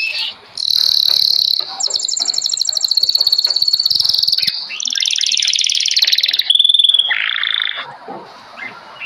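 Small birds chirp and trill loudly close by.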